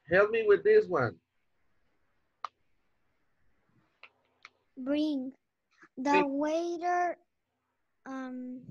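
A girl speaks in short phrases through an online call.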